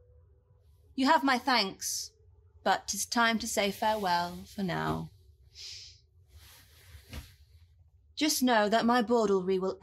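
A second woman answers warmly, close by.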